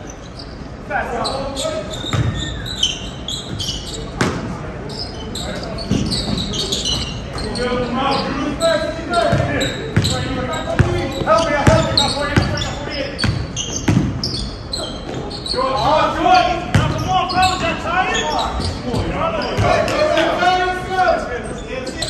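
Young men call out to each other in an echoing gym.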